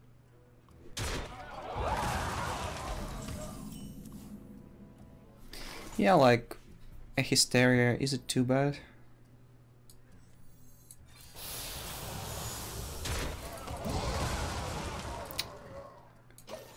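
Magical whooshes and chimes of game effects swell and fade.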